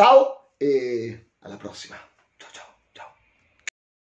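A middle-aged man speaks close to a microphone with animation.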